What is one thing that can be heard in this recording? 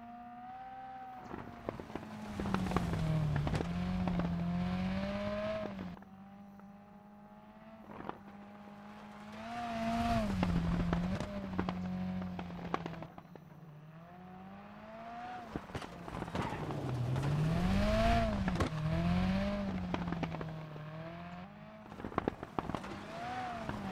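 A rally car engine revs hard, rising and falling in pitch.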